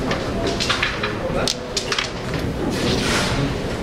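Carrom pieces clack against each other.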